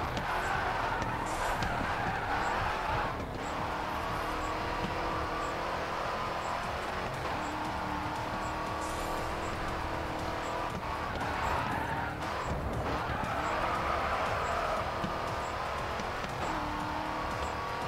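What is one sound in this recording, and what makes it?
A race car engine roars loudly, revving up and down as gears shift.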